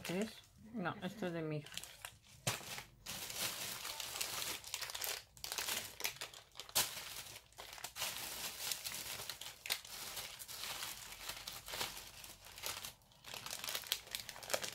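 Plastic packets crinkle and rustle as they are handled.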